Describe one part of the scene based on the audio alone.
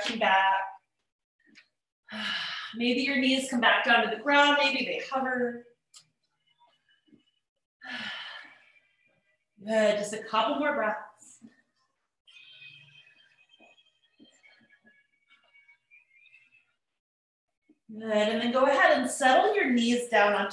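A woman speaks calmly through a microphone, giving instructions in pauses.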